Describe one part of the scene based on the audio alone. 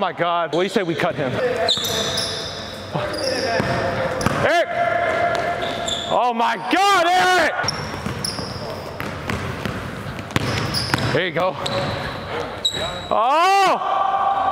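Sneakers squeak sharply on a hard court, echoing in a large hall.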